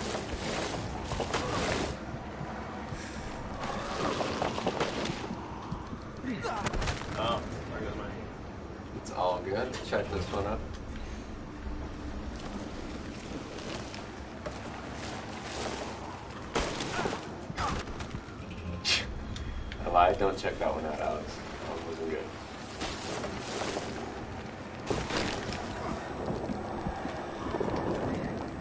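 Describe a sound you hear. Skis carve and hiss over snow as a skier speeds downhill.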